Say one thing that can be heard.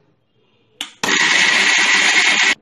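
A mixer grinder whirs loudly.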